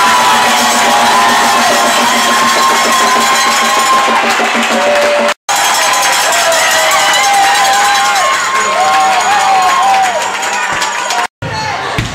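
A crowd of fans cheers and shouts.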